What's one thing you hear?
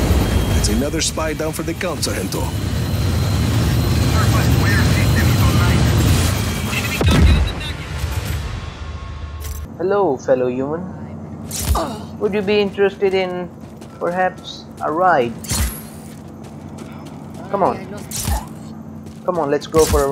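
A young man talks close to a microphone with animation.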